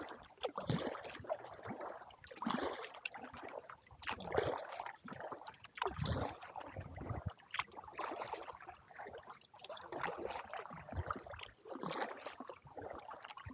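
Water splashes and laps against the hull of a kayak as it paddles along.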